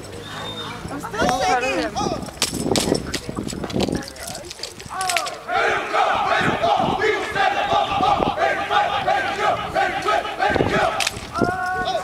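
Drill rifles slap against hands.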